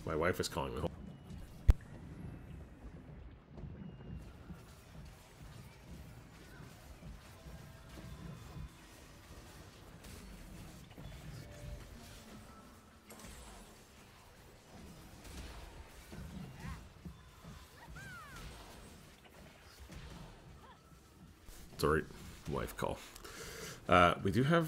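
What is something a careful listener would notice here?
Game characters clash with magical whooshes and impacts in battle.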